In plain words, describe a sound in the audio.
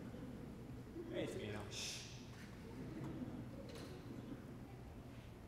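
A young man speaks theatrically on a stage, heard from a distance.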